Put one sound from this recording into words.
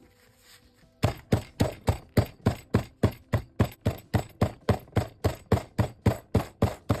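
A hammer taps rapidly and steadily on stone.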